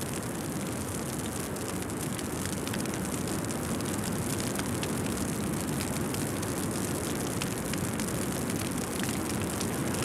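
Flames roar and crackle on a burning ship.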